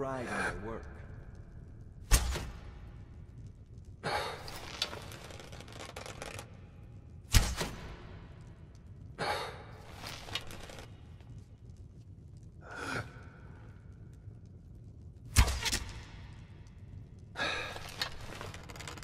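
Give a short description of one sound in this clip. A man groans in pain.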